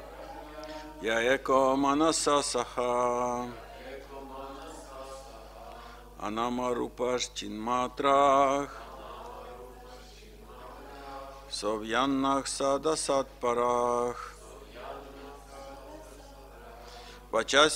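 A middle-aged man chants melodically into a microphone in short bursts.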